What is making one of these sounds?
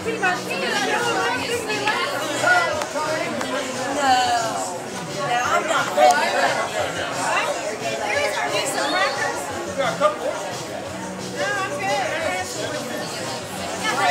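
A crowd of people chatter in a busy, noisy room.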